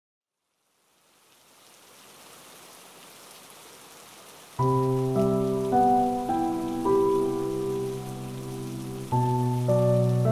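Rain patters steadily on leaves.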